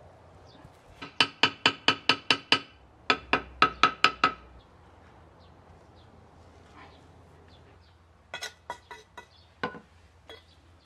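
A mallet taps a concrete block into place in quick runs.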